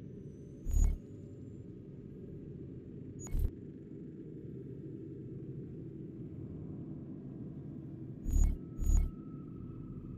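Short soft menu clicks sound now and then.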